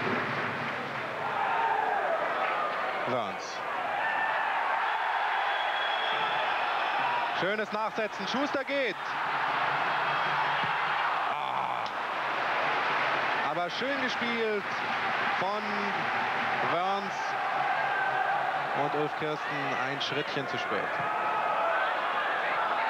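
A large crowd roars and cheers steadily in an open stadium.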